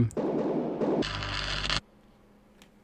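Loud static hisses briefly.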